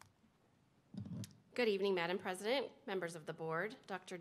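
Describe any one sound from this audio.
A woman speaks calmly at a podium microphone.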